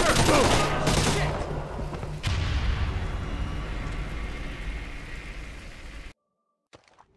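A loud blast booms and rumbles away.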